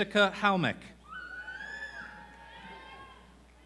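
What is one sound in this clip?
An audience cheers and whoops loudly.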